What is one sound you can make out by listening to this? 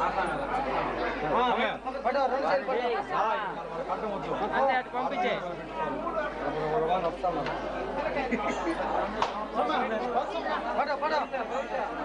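Several men's voices chant and talk together close by.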